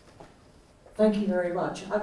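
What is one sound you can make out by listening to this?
A woman speaks calmly through a loudspeaker.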